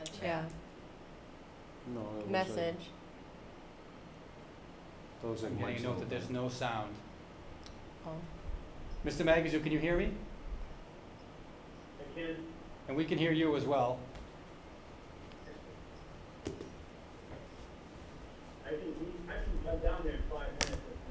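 Adults speak calmly in turns through microphones in a room, with pauses between.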